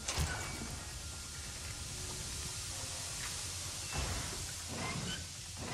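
Steam hisses loudly from a pipe.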